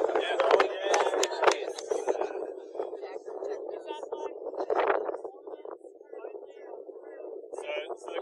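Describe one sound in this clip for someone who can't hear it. A group of young men and women chat casually nearby outdoors.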